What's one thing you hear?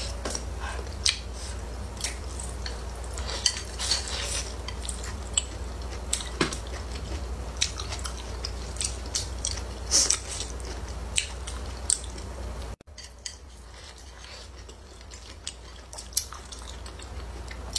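Chopsticks click against a ceramic plate.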